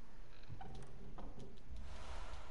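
A chest lid creaks open with a few clicks.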